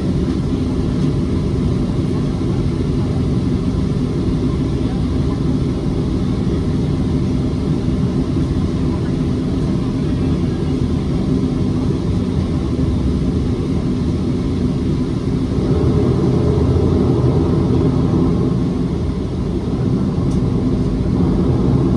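Jet engines roar steadily as an airliner taxis, heard from inside the cabin.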